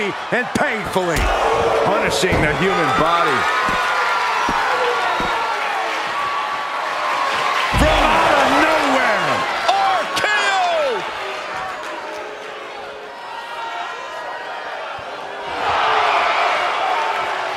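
A large crowd cheers and roars in a big hall.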